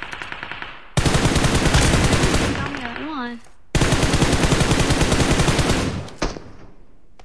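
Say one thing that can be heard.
Rapid gunfire rattles in long bursts.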